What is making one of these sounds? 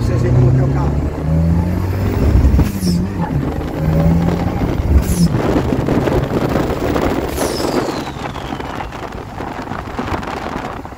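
Tyres roar on a road at speed.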